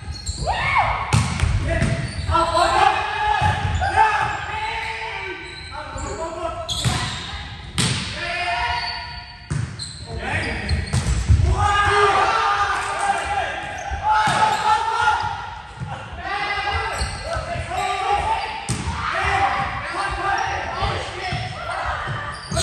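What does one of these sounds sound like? Young men call out and shout to each other across the court.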